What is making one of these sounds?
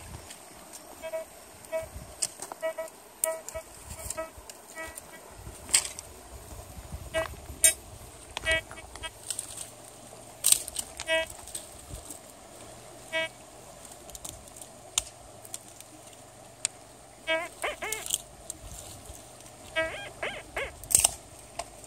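A metal detector beeps in short repeated tones.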